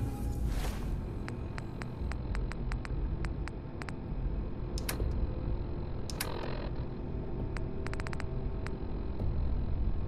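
Soft electronic clicks tick rapidly as a menu scrolls.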